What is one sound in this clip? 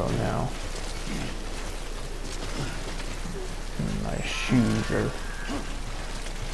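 Heavy footsteps crunch over loose rocks.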